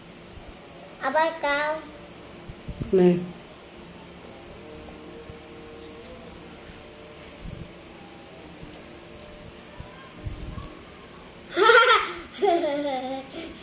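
A young girl talks in short bursts up close.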